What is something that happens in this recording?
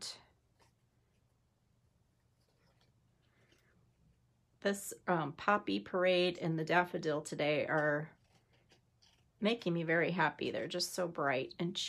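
Scissors snip through thin card.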